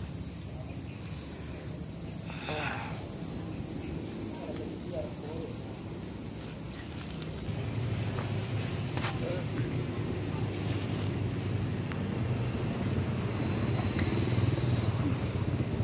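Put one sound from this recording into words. Grass and leaves rustle close by as a man moves through them.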